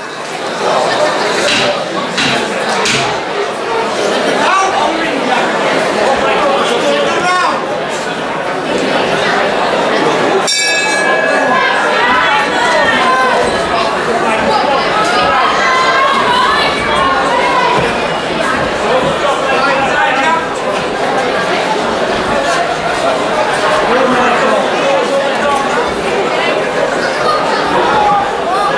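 A crowd of men and women talks and shouts loudly in an echoing hall.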